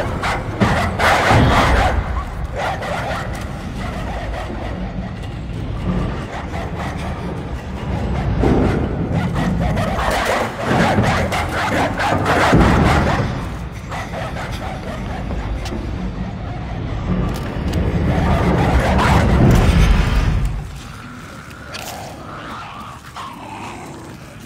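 Dogs growl and snarl while attacking.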